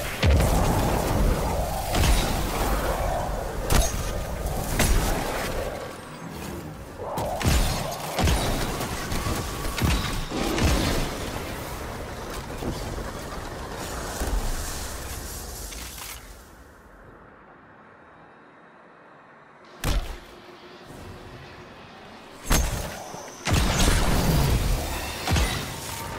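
Gunshots fire in sharp bursts.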